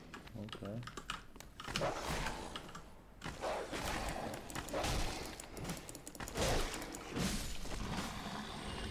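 Metal weapons clash and strike in a fight.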